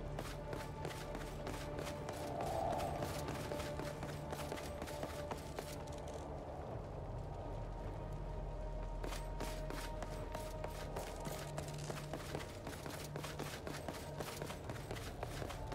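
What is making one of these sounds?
Footsteps patter quickly over stone.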